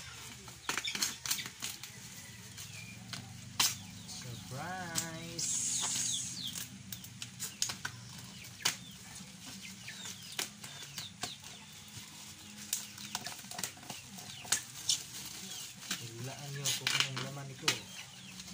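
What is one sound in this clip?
A knife blade scrapes and crinkles against plastic wrapping.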